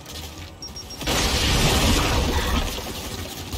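A blast booms and rumbles.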